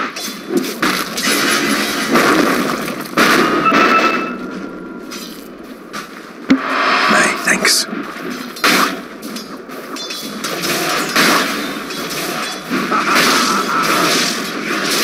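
Game fight sounds clash and burst with spell effects and weapon hits.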